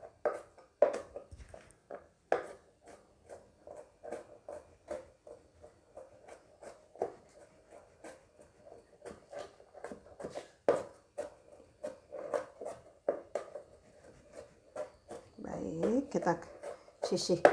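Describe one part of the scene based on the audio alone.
A knife chops rapidly on a plastic cutting board.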